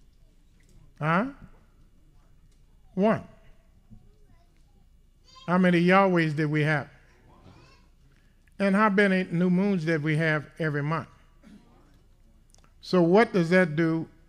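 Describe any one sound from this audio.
An elderly man speaks calmly and slowly into a microphone, with pauses between phrases.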